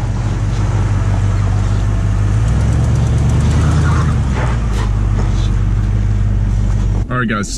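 A vehicle engine rumbles low and steady close by.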